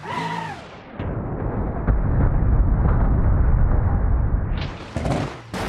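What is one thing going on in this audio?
Metal grinds and tears.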